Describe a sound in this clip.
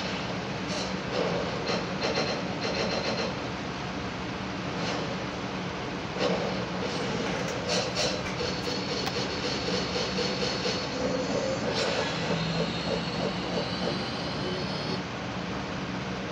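Upbeat game music plays from a television speaker.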